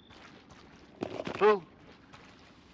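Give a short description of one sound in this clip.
A man shouts playfully close by.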